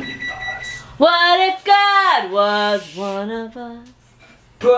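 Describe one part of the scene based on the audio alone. A young woman sings loudly close by.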